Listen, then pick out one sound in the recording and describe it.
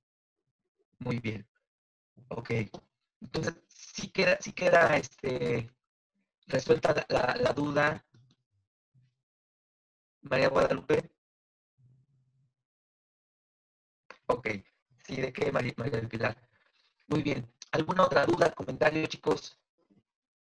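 A young woman speaks calmly through a microphone, as if on an online call.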